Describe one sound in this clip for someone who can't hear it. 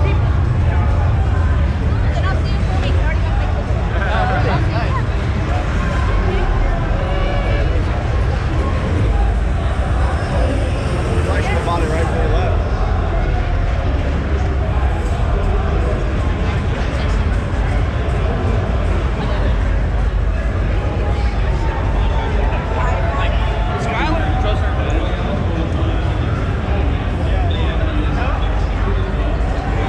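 A young man talks close by.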